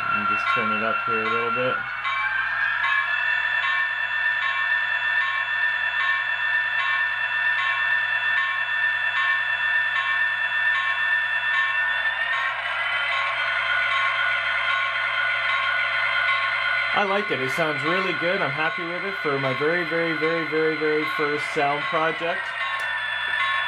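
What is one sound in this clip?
A small model locomotive's diesel engine sound drones steadily, then revs up.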